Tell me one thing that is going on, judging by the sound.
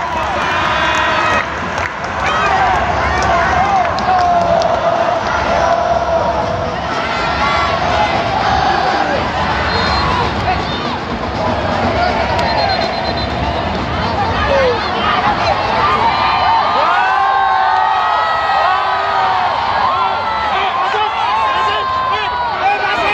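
Nearby spectators shout and cheer excitedly.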